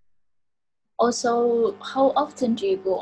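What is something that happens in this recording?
Another young woman speaks loudly and fast over an online call.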